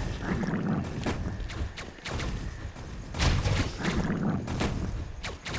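Video game weapons fire in quick bursts of sharp zaps.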